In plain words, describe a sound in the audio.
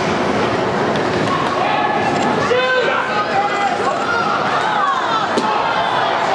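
Hockey sticks click against a puck.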